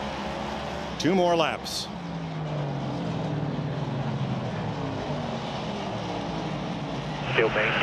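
A car engine revs up sharply as it passes close by.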